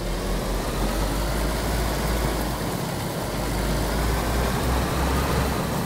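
A car engine hums steadily as the car drives over grass.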